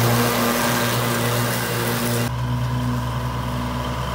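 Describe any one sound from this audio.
A mower deck whirs as it cuts grass.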